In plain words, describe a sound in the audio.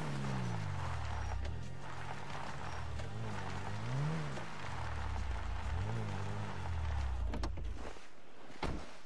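A car engine hums and revs as a car drives.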